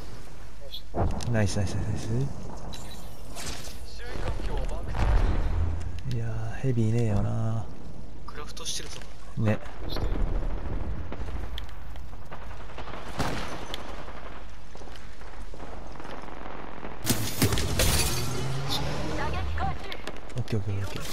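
Gunshots crack sharply, one at a time.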